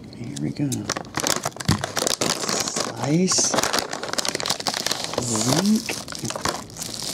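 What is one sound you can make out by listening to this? A foil pack crinkles and tears open.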